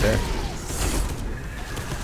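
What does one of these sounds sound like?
A gun fires a bright blast.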